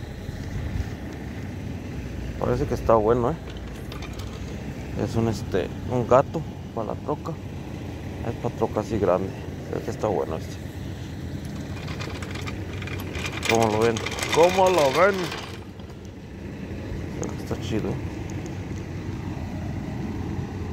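A floor jack's small metal wheels rumble and rattle over asphalt.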